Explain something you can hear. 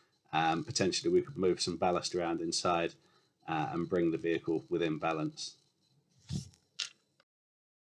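A man speaks calmly into a microphone on an online call.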